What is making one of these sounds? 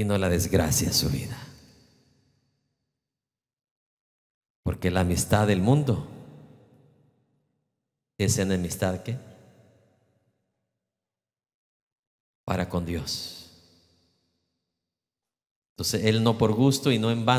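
A middle-aged man preaches with animation through a microphone in a large echoing hall.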